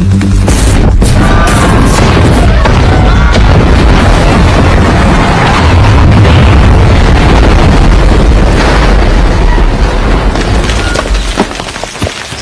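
A loud explosion roars and rumbles.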